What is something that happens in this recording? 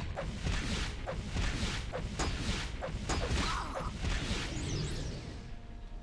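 Sword blows clash and strike repeatedly.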